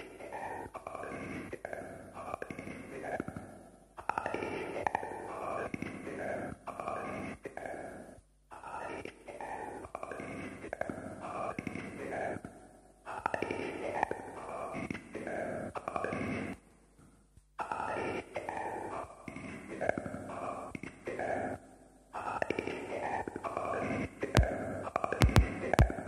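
Electronic synthesizer music plays in pulsing bursts.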